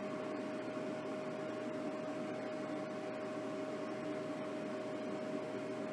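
Liquid is poured onto a dehydrator tray.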